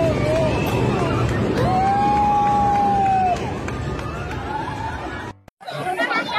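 Young people laugh and chatter close by.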